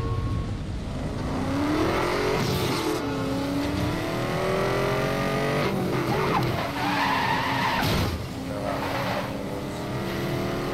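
A sports car engine revs and roars as the car speeds up, rising and falling in pitch through the gears.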